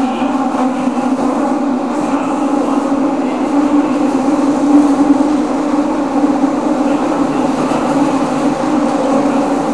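A train rumbles and hums into an echoing underground station.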